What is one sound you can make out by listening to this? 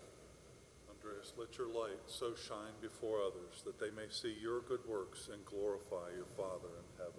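An older man speaks calmly through a microphone in an echoing hall.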